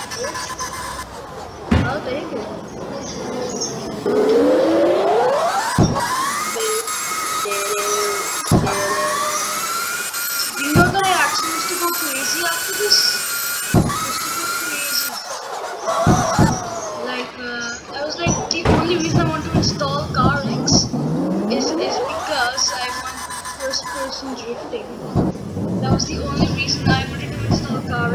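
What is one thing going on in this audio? Tyres screech as a sports car drifts sideways.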